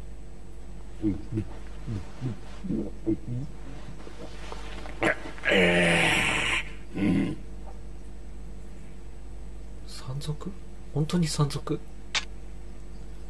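A man speaks slowly in a low, gruff voice.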